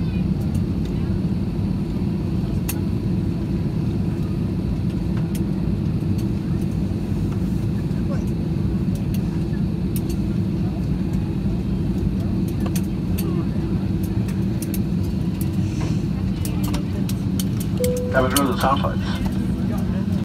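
A jet engine hums with a steady low roar as an airliner taxis.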